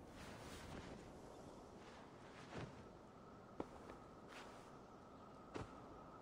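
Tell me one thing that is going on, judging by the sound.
Clothing rustles and thumps softly as a man gets up from a bed.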